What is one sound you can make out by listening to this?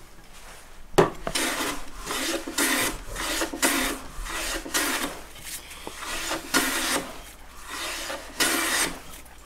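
A hand plane shaves wood in repeated rasping strokes.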